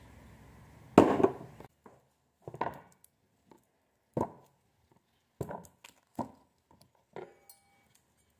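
Vegetables knock onto a wooden board.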